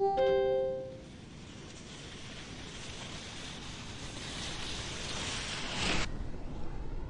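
Skis hiss along an icy ramp track.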